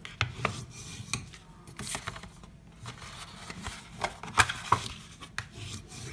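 A plastic folding tool scrapes along a crease in paper.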